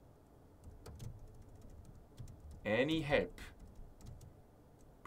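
Keys click softly on a keyboard.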